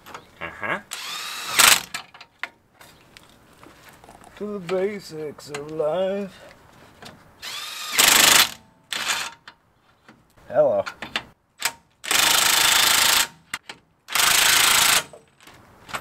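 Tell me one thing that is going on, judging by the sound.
A pneumatic impact wrench whirs and rattles in short bursts.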